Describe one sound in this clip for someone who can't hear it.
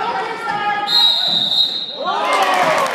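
A referee's whistle blows one sharp, long blast.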